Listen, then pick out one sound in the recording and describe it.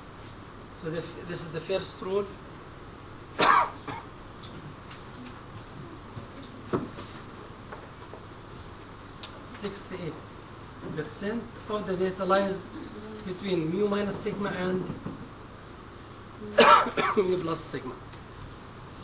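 A middle-aged man lectures calmly into a microphone, in pauses.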